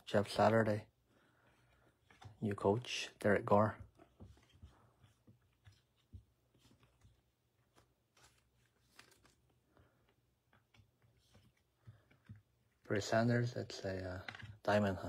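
Trading cards rustle and tap softly on a table.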